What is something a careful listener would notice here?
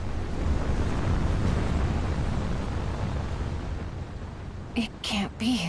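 A deep, steady rumble roars as a cloud of dust swirls, then fades.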